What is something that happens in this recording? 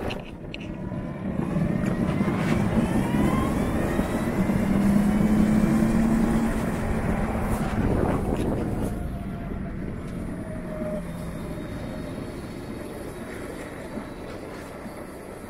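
A motor scooter engine revs and hums while riding along a street.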